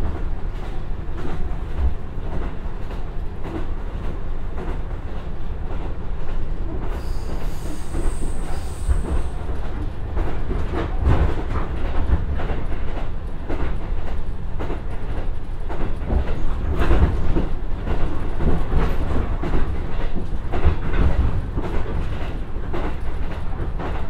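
A train's diesel engine rumbles steadily close by.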